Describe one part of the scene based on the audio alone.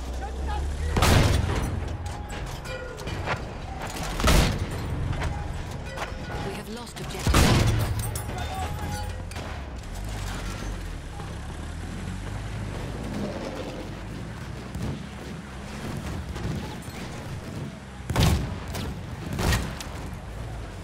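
A tank cannon fires with loud, booming blasts.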